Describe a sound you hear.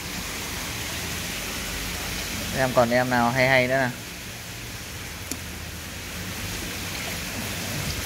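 Koi thrash and splash in a shallow tub crowded with fish.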